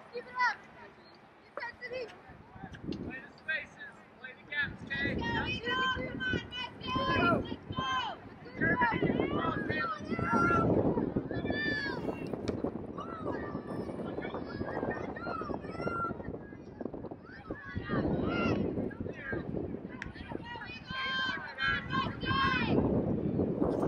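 Young women shout and call out to each other across an open field.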